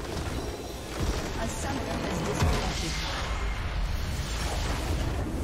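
A deep electronic boom rings out as a large crystal explodes.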